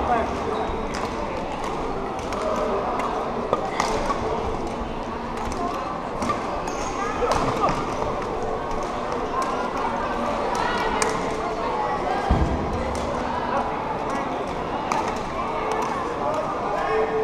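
Many voices murmur and call out around a large echoing hall.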